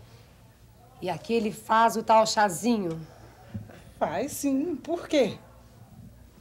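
An older woman speaks firmly.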